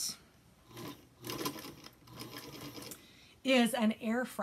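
A sewing machine runs and stitches.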